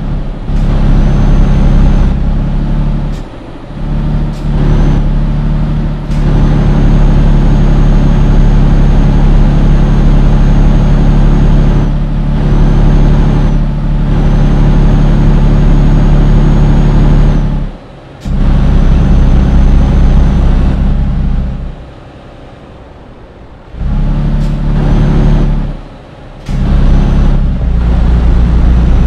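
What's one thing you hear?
A diesel truck engine drones under load, dropping away now and then.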